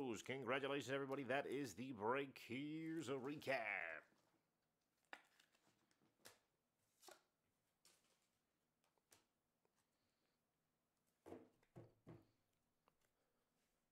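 Trading cards rustle and click as hands handle them.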